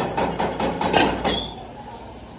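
Heavy metal castings clank as they are set down on a pile.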